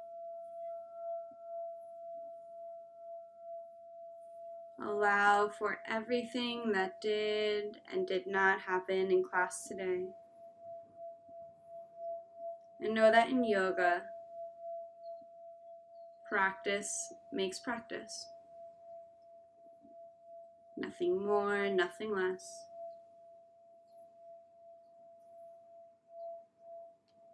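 A singing bowl rings with a steady, humming tone as a mallet circles its rim.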